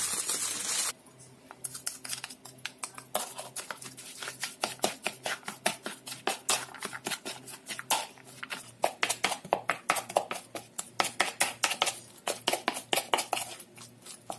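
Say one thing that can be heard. A wooden spatula squelches and taps as ground meat is mixed in a bowl.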